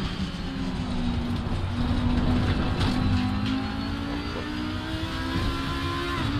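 A racing car engine roars loudly at high revs.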